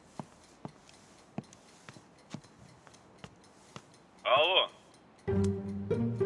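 A man talks on a phone with animation.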